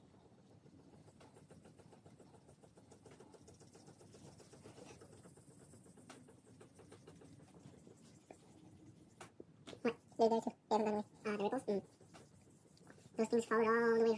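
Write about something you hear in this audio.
A sponge rubs softly over a smooth surface.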